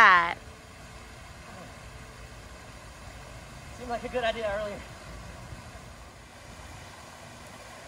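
A fountain splashes steadily in the distance.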